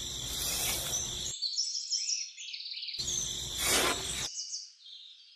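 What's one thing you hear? A small trowel scrapes and scoops through dry powder.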